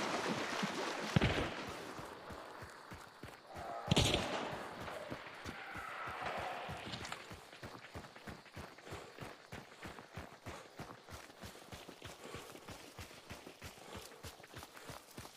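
Footsteps crunch steadily on dry dirt and grass.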